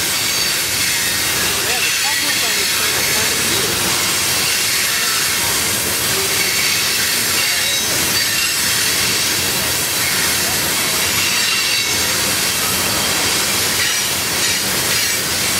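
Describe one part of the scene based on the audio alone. Wheels clack over rail joints in a steady rhythm.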